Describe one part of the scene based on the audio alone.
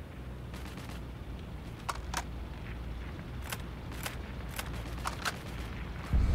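A rifle bolt clicks and clacks as it is worked.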